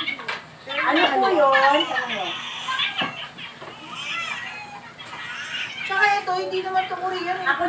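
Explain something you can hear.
Women talk and laugh with animation close by.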